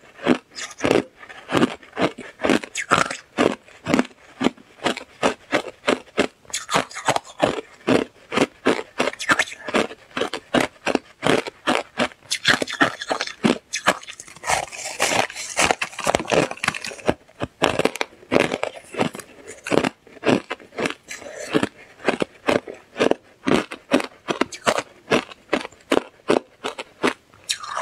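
A young woman crunches loudly on ice close to a microphone.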